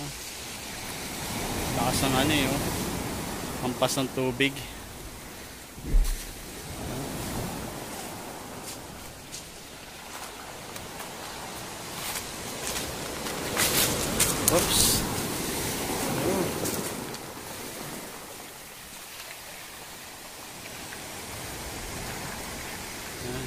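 Waves wash and foam onto the shore.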